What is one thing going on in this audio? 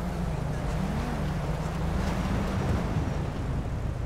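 A car engine rumbles low as a car drives slowly.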